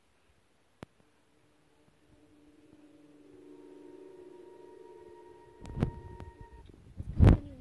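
Eerie low music drones steadily and swells.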